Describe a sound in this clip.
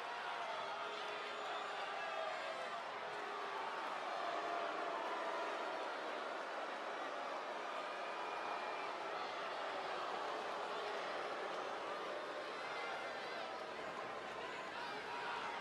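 A large crowd cheers and whistles loudly in a big arena.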